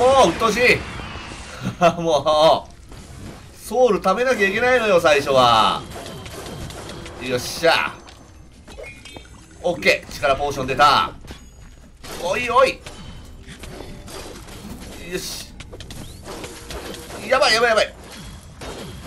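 Video game combat sounds of strikes and magic blasts burst out repeatedly.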